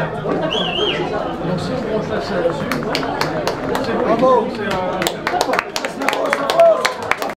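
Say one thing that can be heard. A crowd of men and women chatters and cheers loudly close by.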